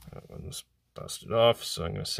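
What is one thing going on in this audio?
Batteries clink against a hard surface.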